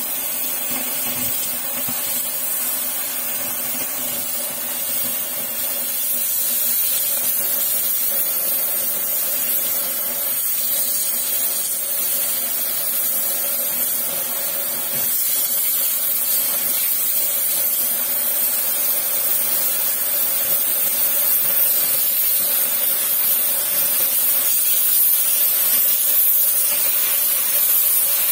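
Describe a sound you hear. A gas cutting torch hisses and roars steadily close by.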